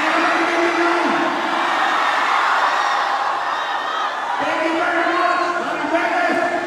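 A man sings into a microphone over loudspeakers.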